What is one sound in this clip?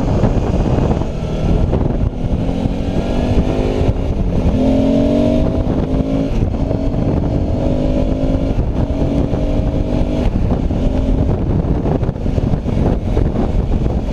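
A motorcycle engine hums and climbs in pitch as it speeds up through the gears.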